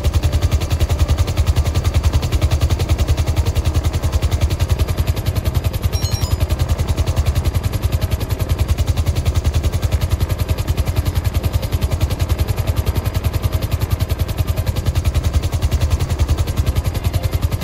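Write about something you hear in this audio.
A helicopter engine whines steadily.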